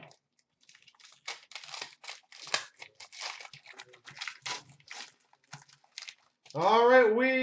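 Cards rustle and flick as they are sorted by hand.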